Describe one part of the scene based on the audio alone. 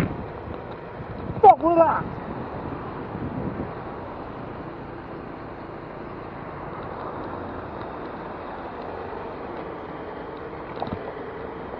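A bus engine idles nearby with a steady low rumble.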